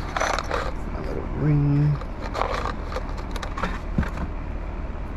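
A cardboard box rustles and crinkles as hands handle it.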